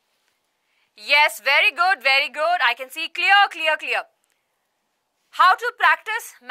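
A young woman speaks close to a microphone, reading out with animation.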